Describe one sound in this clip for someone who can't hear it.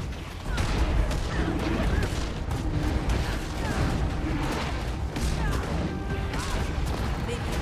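Spell effects crackle and whoosh in rapid bursts during a fantasy battle.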